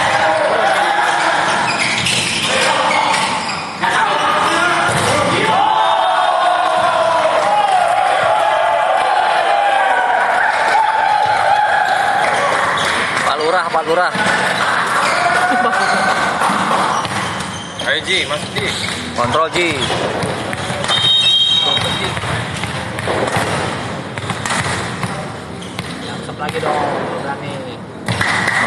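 Young men shout and call out across a large echoing hall.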